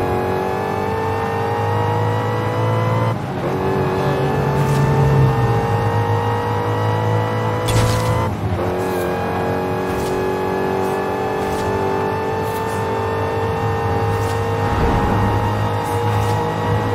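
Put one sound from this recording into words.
A car engine roars loudly, rising in pitch through each gear and dropping briefly at each gear change.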